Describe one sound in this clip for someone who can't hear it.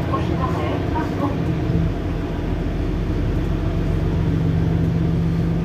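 A hybrid diesel city bus idles.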